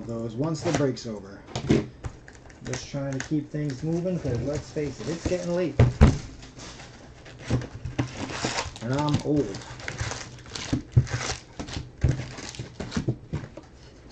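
Cardboard scrapes and taps as a box is opened.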